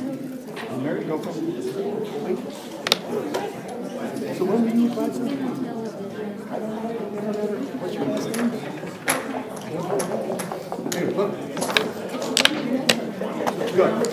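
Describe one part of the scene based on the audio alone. Plastic game pieces click and clack against a wooden board.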